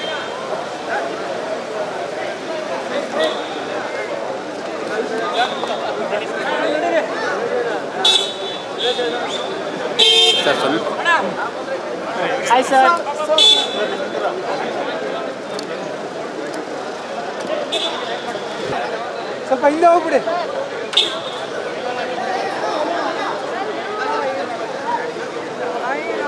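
A crowd of men talks and calls out at once outdoors.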